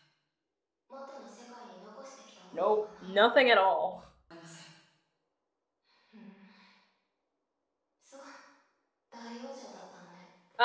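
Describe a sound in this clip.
A young woman talks casually and animatedly into a microphone, close by.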